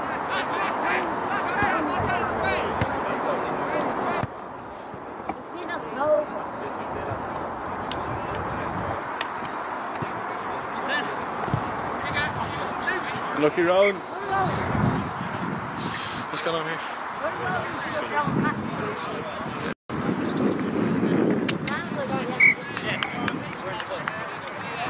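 A crowd of men and women chat outdoors nearby.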